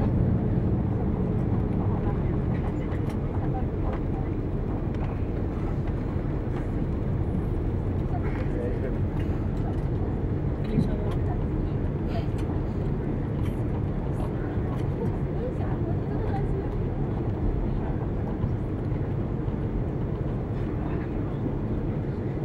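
A jet airliner's engines roar steadily from inside the cabin.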